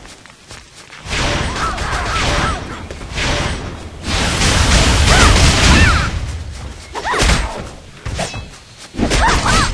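Heavy weapon blows swoosh and thud in bursts.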